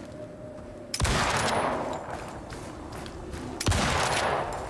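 A rifle fires two loud shots that ring out and fade.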